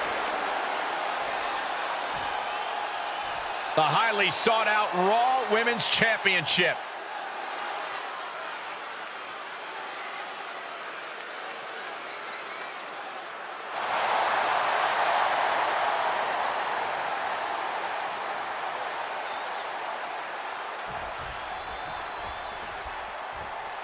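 A large crowd cheers and roars in a big arena, growing louder partway through.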